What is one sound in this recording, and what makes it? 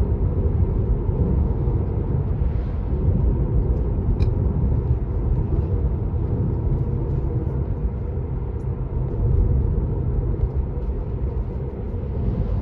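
A car engine hums and tyres rumble steadily on the road from inside the car.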